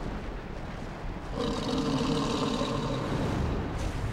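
Flames roar with a low rumble.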